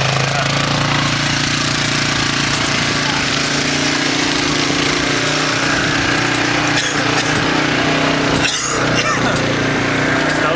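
An all-terrain vehicle engine drones steadily.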